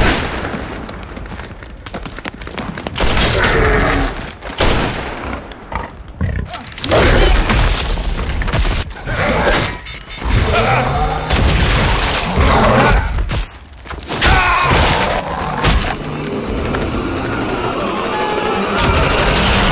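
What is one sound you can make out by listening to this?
Rifles fire sharp bursts of gunshots.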